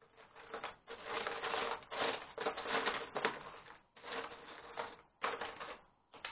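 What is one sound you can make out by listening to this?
Plastic toy bricks rattle as a hand rummages through a box.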